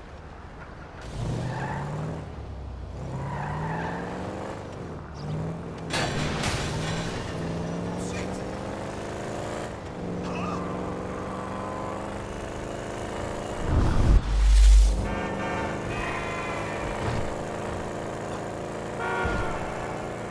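A car engine starts and revs up through the gears as the car speeds along.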